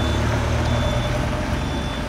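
A bus drives past.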